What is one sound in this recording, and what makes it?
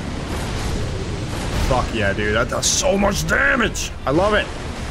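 A sword slashes and clangs against a beast.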